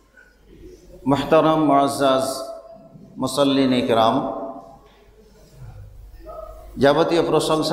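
A middle-aged man speaks calmly and close into a microphone.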